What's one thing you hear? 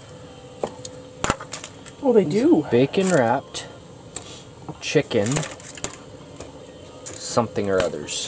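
Metal tongs clink and scrape against a foil tray.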